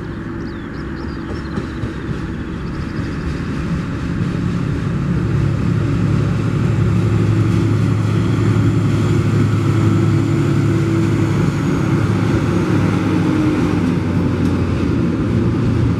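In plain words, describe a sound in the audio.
A diesel locomotive engine rumbles loudly as it approaches and passes close by.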